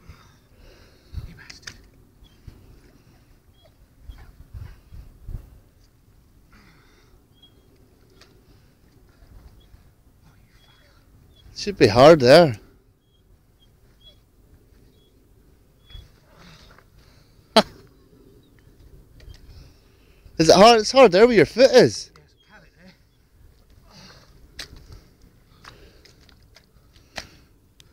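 Boots squelch and suck in deep mud.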